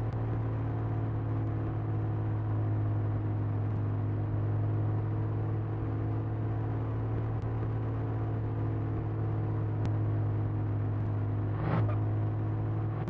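A small truck's engine hums steadily at low speed.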